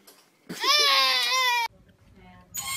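A toddler screams and wails up close.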